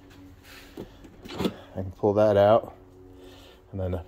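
A charging plug clicks into a car's port.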